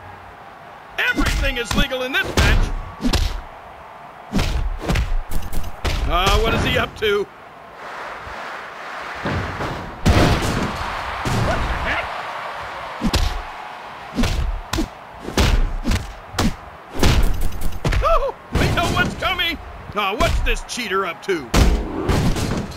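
Game punches and kicks thud in quick bursts.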